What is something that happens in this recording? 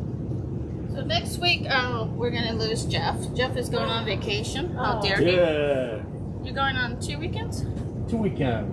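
A woman speaks calmly and clearly to a nearby microphone.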